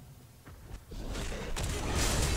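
A magical blast bursts loudly and crackles.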